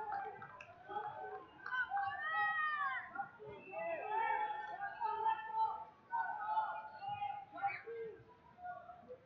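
A crowd of spectators shouts and talks in a large echoing hall.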